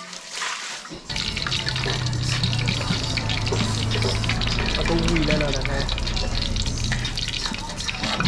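Food sizzles and crackles in hot oil.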